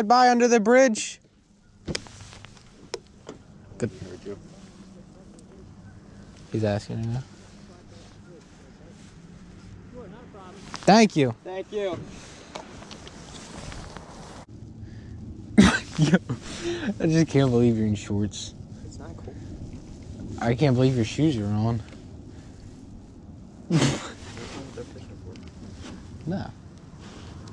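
A young man talks casually nearby, outdoors.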